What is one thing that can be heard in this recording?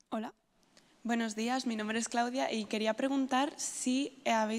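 A woman speaks into a microphone, her voice carried through loudspeakers in a large hall.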